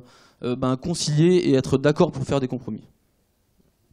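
A man speaks into a microphone, heard through loudspeakers in a large hall.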